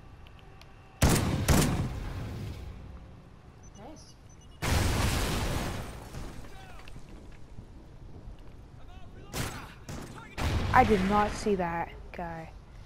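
A rifle fires short bursts of gunshots.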